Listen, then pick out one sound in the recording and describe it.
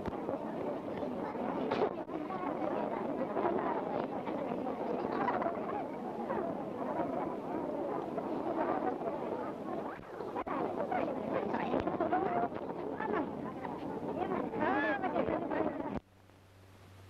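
A large crowd of men talks and murmurs loudly outdoors.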